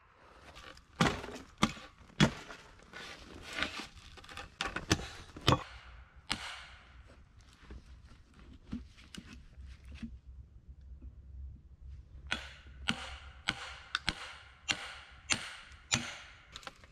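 Sharp knocks of an axe chopping wood ring out outdoors.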